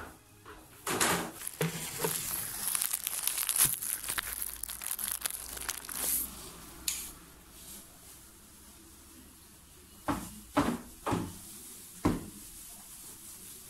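A mop swishes across a floor.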